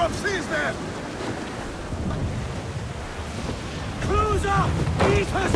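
Stormy waves crash and surge against a wooden ship.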